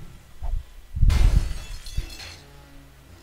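A pickaxe strikes a metal safe with a loud clang.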